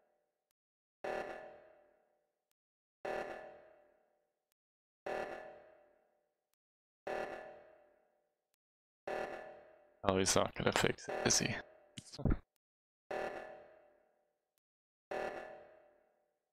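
An alarm blares in short, repeated bursts about every two seconds.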